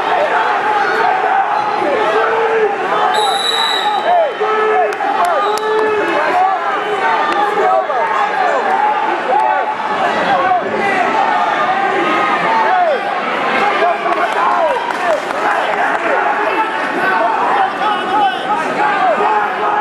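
A crowd cheers and shouts loudly in a large echoing hall.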